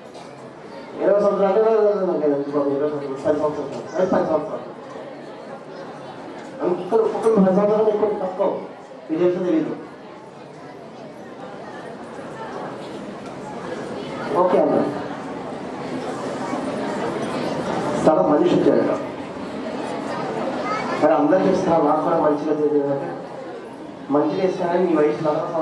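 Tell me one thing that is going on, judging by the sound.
A man speaks calmly into a microphone, heard through a loudspeaker in a reverberant room.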